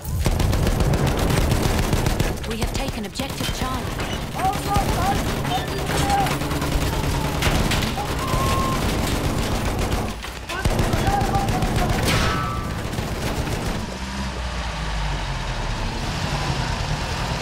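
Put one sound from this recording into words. Explosions rumble in a distant battle.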